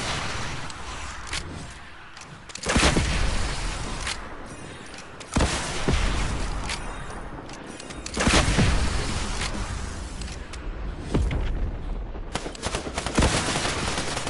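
Rockets launch with a sharp whoosh.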